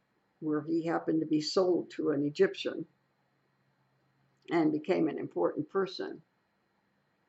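An elderly woman speaks calmly and close by, heard through a microphone.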